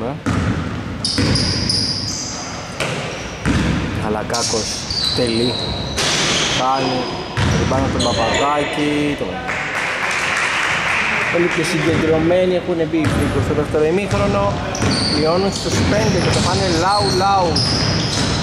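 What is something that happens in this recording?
Basketball shoes squeak sharply on a hard floor in a large echoing hall.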